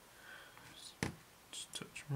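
A brush clinks against a glass bottle.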